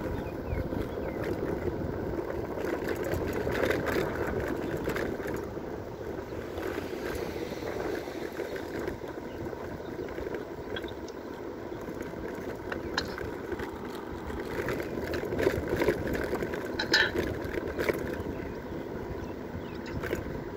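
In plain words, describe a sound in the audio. Wind blows steadily outdoors, rumbling against the microphone.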